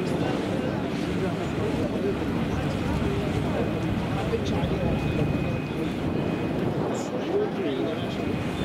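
Water splashes and churns against a moving boat's hull.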